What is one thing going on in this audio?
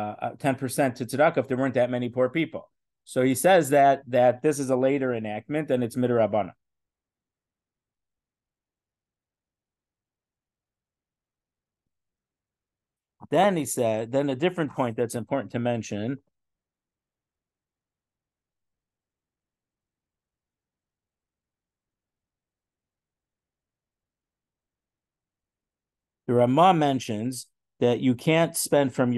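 A middle-aged man speaks calmly through an online call, pausing at times.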